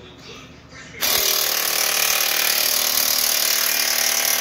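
A power drill whirs loudly and steadily.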